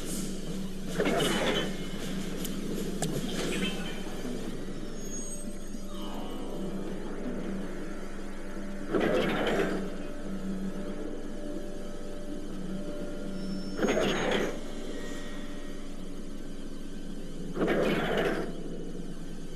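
Short electronic whooshes sound from time to time.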